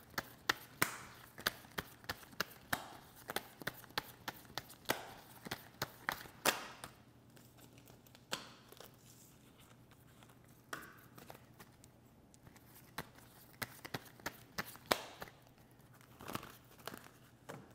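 Small objects click and tap in a woman's hands close by.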